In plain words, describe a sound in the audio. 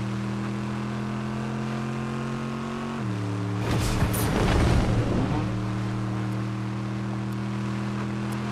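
A vehicle engine hums steadily, dipping in pitch briefly.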